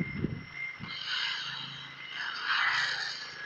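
A large explosion booms against a spaceship.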